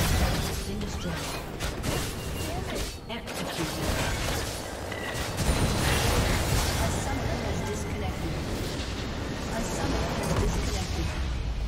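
Video game battle effects clash and crackle.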